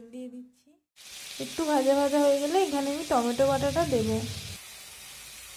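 Hot oil hisses and bubbles in a pan.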